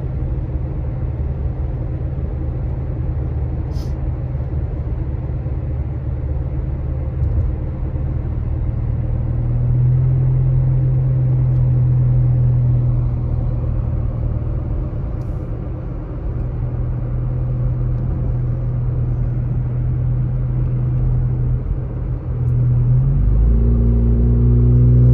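A car engine hums steadily from inside the car as it drives.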